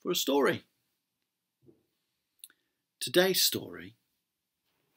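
A middle-aged man speaks calmly and close to a microphone, in short phrases.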